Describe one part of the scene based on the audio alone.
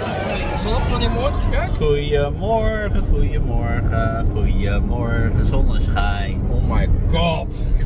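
A man talks close by, casually.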